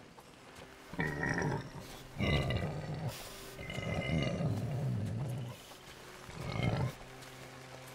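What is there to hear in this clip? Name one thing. A pig grunts and squeals close by.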